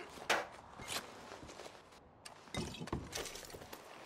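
A glass bottle clinks as it is picked up.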